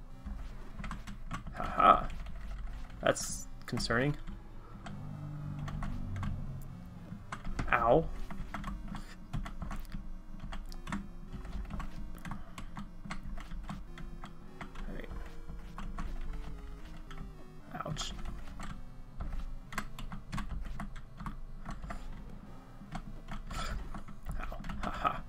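Retro video game music plays with chiptune beeps.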